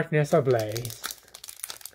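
A foil card pack crinkles as hands open it.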